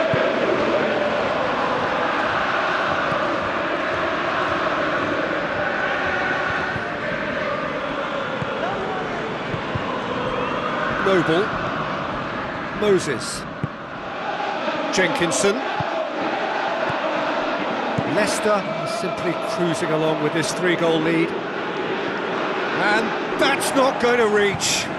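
A stadium crowd roars and murmurs steadily.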